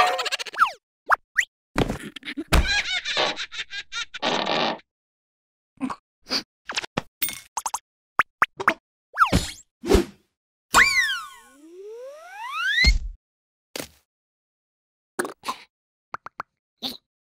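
A cartoon creature jabbers and squeals in a high, squeaky voice.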